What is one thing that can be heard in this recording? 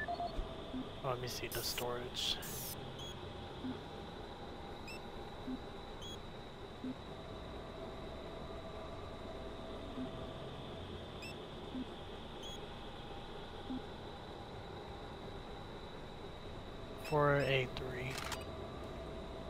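A handheld device chirps electronically as it switches on and off.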